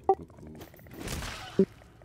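Flesh tears and splatters wetly.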